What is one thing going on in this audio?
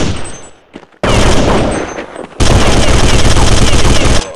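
An assault rifle fires bursts in a video game.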